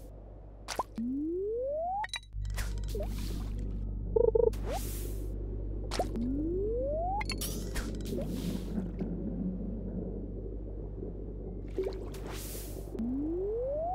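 A rising electronic tone sounds as a fishing cast charges up.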